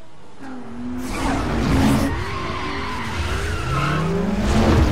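Tyres screech on pavement.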